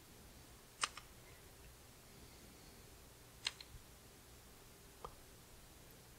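Playing cards snap into place with short, sharp clicks.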